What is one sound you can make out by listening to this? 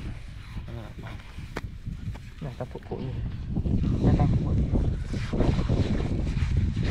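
Hands scrape and dig through dry, crumbly sand.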